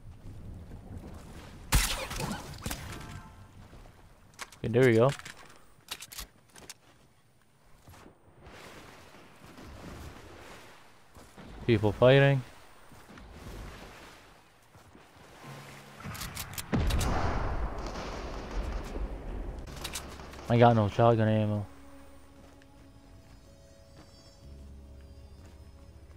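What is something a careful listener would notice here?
Footsteps thud quickly on grass and wooden steps.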